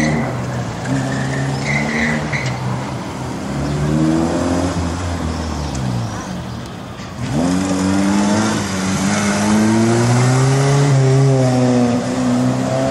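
A small car engine revs hard, rising and falling as the car accelerates and brakes through tight turns.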